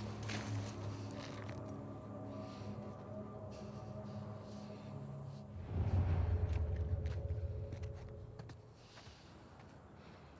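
Footsteps shuffle through dry leaves.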